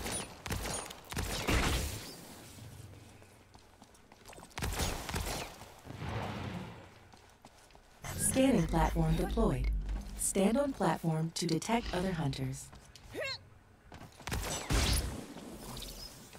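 Gunshots and blasts burst out in short bursts.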